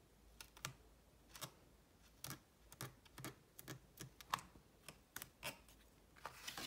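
A bone folder rubs and scrapes along folded paper in short strokes.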